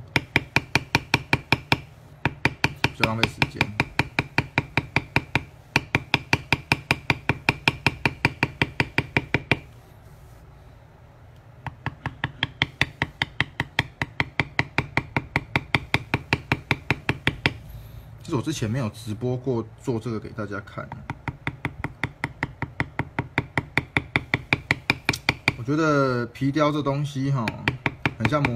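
A mallet taps rapidly and steadily on a tool, knocking into leather.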